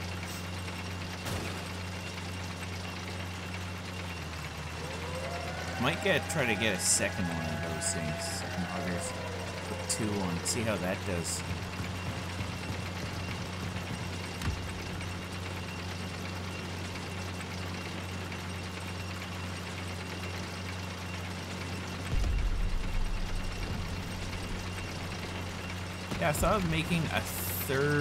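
A heavy armoured vehicle's engine drones steadily.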